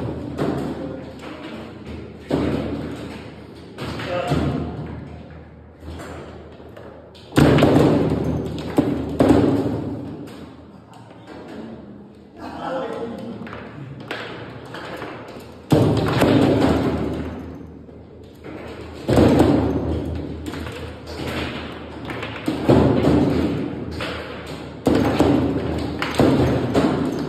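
A plastic ball knocks sharply against the sides of a foosball table.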